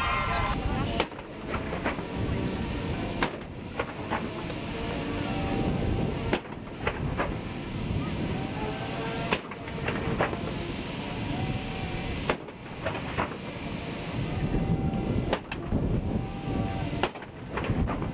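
Cannon shots boom at steady intervals, echoing outdoors.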